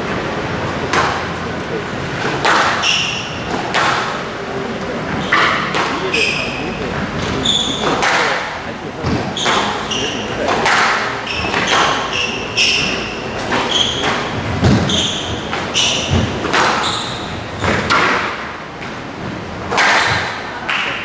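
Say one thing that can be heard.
A squash ball smacks off the walls.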